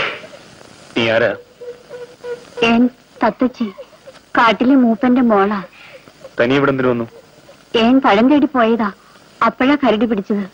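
A young woman speaks, close by.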